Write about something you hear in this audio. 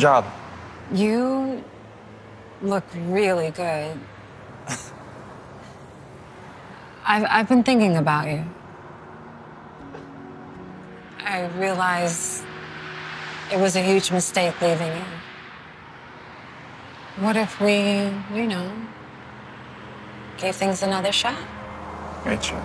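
A woman speaks close by in a quiet, earnest voice.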